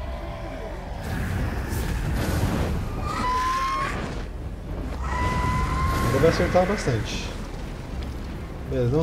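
A low rumbling roar swells up.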